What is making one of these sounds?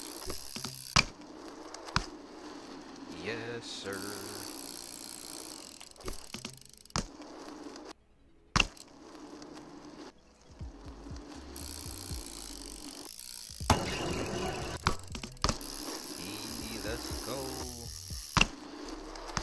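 Bike wheels land with sharp knocks.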